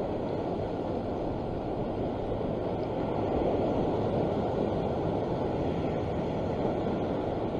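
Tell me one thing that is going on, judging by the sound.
Waves wash steadily against a rocky shore.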